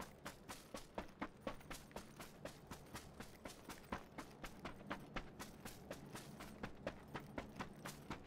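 Footsteps run quickly and steadily through dry grass.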